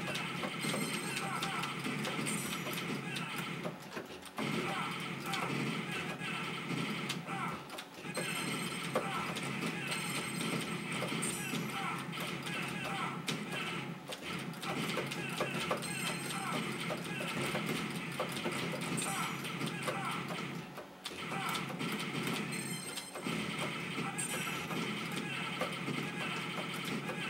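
Arcade game music plays loudly.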